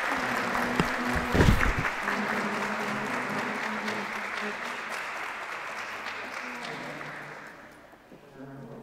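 An audience applauds in a large echoing hall and slowly fades away.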